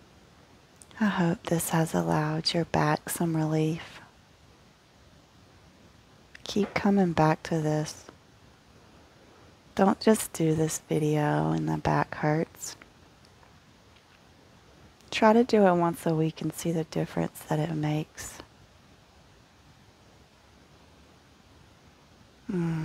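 A woman speaks calmly and softly through a microphone, with long pauses.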